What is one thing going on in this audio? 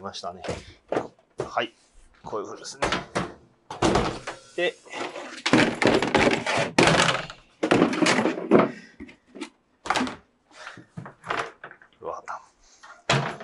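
Hard drum cases knock and scrape as they are handled.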